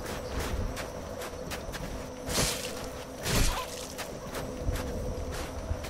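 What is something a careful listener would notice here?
A sword swishes and clangs in a close fight.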